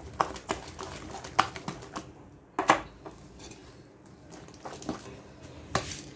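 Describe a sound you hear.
A hand stirs thick cake batter in a glass bowl.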